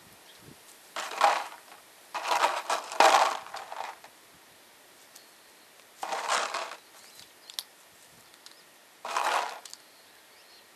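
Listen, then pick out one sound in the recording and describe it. A large bird squawks loudly close by in short bursts.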